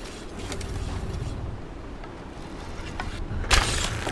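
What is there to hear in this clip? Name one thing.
A bowstring creaks as it is drawn.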